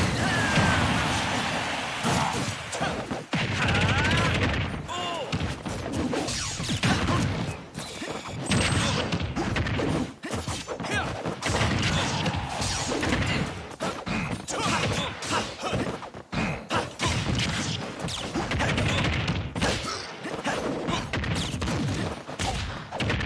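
Laser blasts zap and punches thud in quick bursts.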